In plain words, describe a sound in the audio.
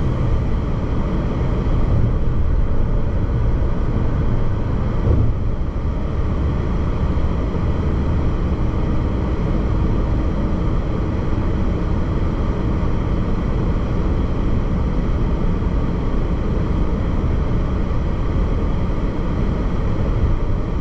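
A car's engine hums steadily inside the cabin.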